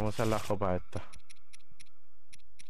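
Soft menu clicks tick at a quick steady pace.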